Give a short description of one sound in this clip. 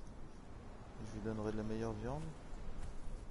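A big cat growls and snarls close by.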